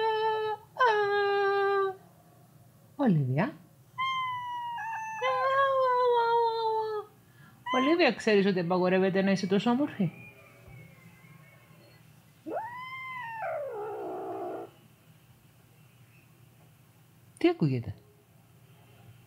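A cat meows loudly and repeatedly, close by.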